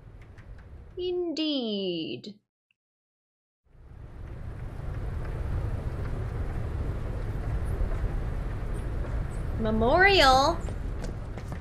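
A young woman speaks with animation through a close microphone.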